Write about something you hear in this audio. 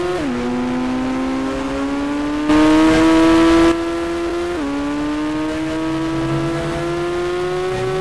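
A car engine hums steadily and rises in pitch as the car speeds up, dropping briefly as the gears change.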